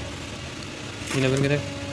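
A metal skimmer scrapes and clinks against a metal pot.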